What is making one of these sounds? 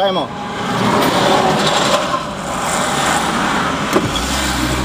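A large truck rushes past.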